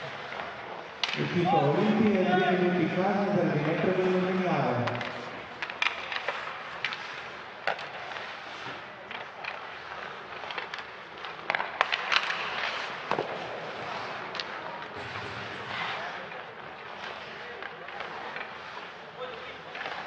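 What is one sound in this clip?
Hockey sticks clack against a puck and the ice, echoing in a large hall.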